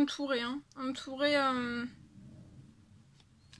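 A hand slides over cards on a table.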